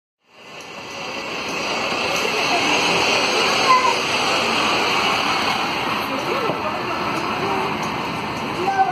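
A bus engine rumbles as a bus pulls away.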